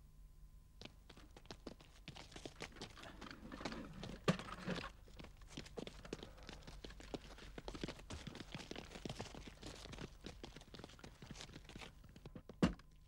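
Footsteps shuffle on dry ground.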